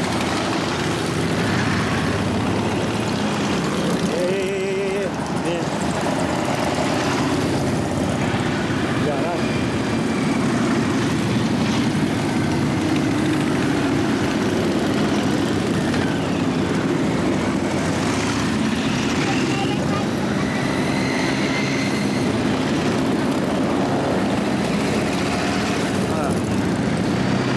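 A long procession of motorcycles rumbles past close by, engines throbbing steadily.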